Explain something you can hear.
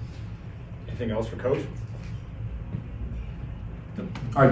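A middle-aged man speaks briefly and calmly into a microphone.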